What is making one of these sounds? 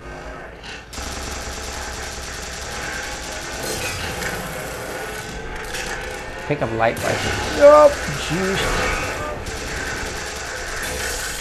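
Rapid energy weapon shots fire with crackling bursts.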